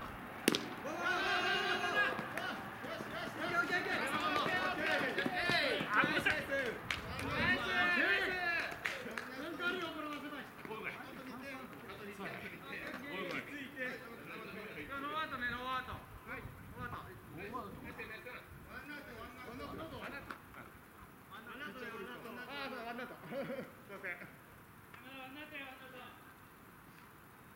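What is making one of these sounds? Men shout and call out to each other outdoors across an open field.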